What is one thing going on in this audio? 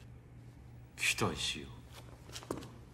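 A man answers briefly in a calm voice.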